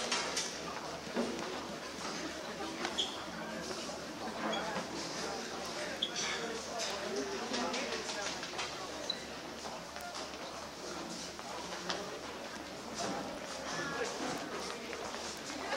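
Musical instruments clink and knock as they are carried.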